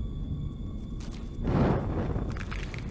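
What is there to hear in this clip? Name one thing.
A match strikes and flares.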